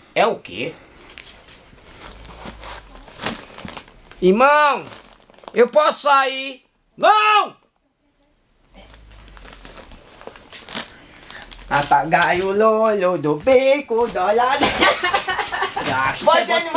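Plastic sacks rustle and crinkle.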